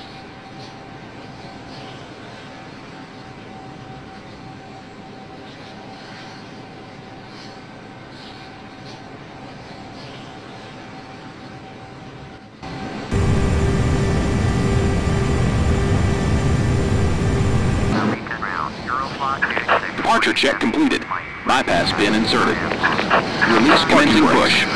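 Jet engines hum and whine steadily.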